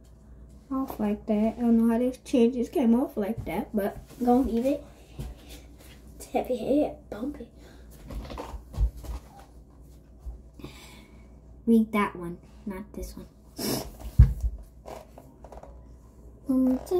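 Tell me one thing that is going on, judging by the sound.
A young girl speaks with animation close by.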